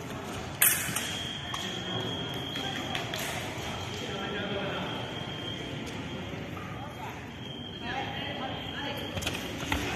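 A scoring machine beeps with a steady high tone.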